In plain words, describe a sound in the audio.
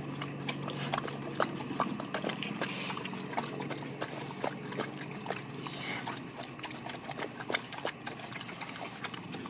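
A dog laps and chews food noisily from a bowl, close by.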